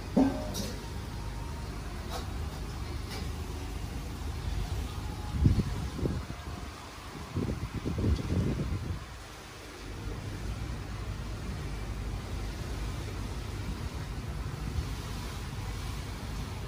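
Air bubbles gurgle steadily in water.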